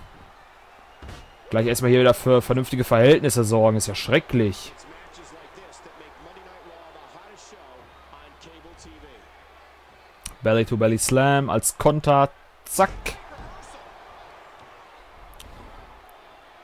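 Heavy bodies slam and thud onto a wrestling ring.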